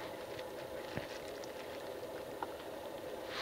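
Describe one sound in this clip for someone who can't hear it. A button clicks softly under a finger.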